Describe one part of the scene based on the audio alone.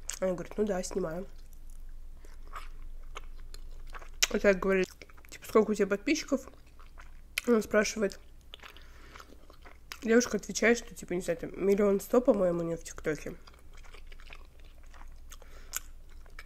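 A young woman chews food with soft, wet mouth sounds.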